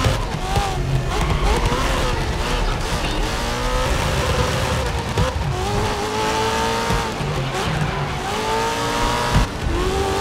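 Tyres screech on asphalt through corners.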